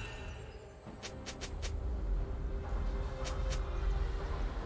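Magic blasts zap and whoosh in quick bursts during a fantasy battle.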